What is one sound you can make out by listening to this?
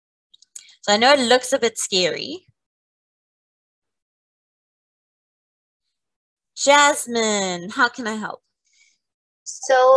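A woman speaks calmly into a close microphone, in short phrases.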